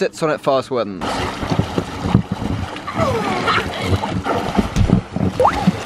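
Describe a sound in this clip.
Water splashes as swimmers jump and thrash in a pool.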